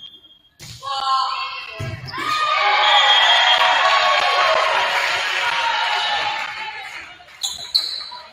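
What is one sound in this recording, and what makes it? A crowd cheers and squeals loudly in an echoing gym.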